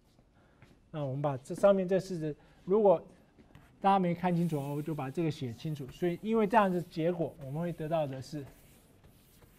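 A man speaks calmly, lecturing.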